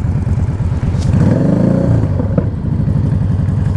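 Another motorcycle nearby revs and pulls away.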